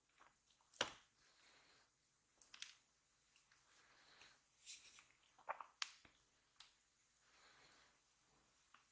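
A wooden spoon and a metal fork clink and scrape against a wooden bowl.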